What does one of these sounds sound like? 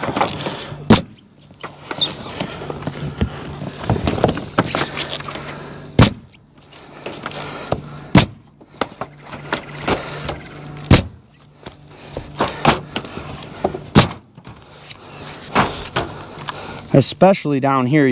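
A pneumatic nail gun fires sharp shots, one every few seconds.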